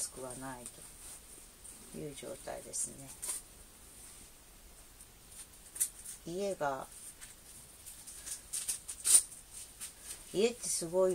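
Fabric rustles softly.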